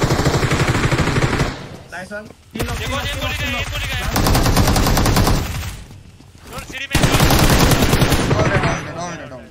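Gunfire rattles in rapid bursts from a game.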